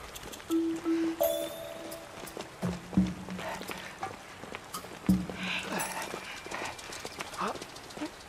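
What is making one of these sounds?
Footsteps crunch on stones.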